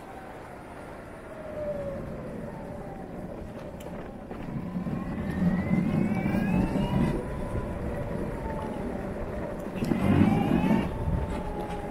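A motor whines, its pitch rising and falling as it speeds up and slows down.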